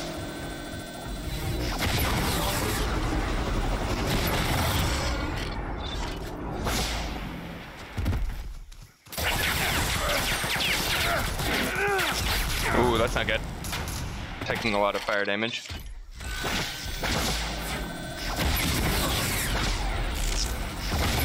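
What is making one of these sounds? Laser weapons fire in short electronic zaps.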